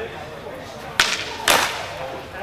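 Longsword blades clash.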